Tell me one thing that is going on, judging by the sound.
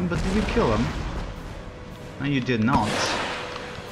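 Muskets fire in scattered, crackling shots.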